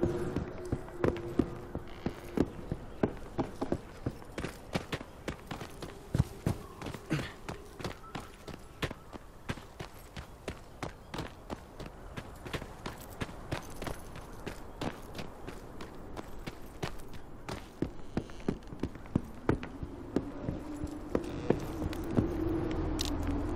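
Footsteps thud at an even walking pace on wooden boards and soft ground.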